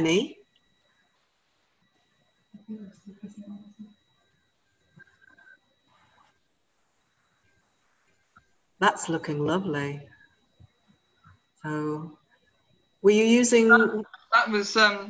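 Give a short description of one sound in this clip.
A middle-aged woman talks calmly over an online call.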